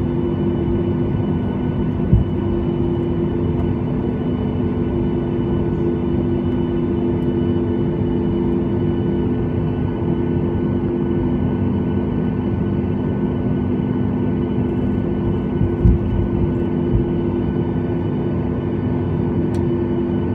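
Aircraft wheels rumble over the taxiway.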